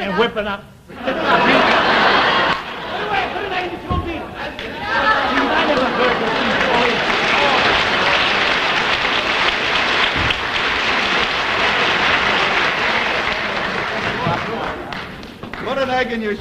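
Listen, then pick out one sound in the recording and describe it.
A group of people laugh loudly.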